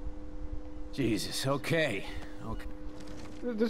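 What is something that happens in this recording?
A man speaks in a weary, exasperated voice.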